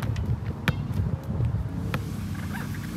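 A basketball bounces on asphalt.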